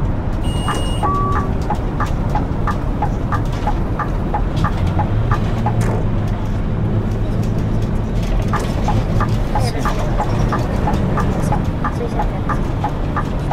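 A bus's turn signal ticks in a steady rhythm.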